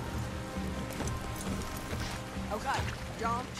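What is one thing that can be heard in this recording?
Horses' hooves clop on a dirt path.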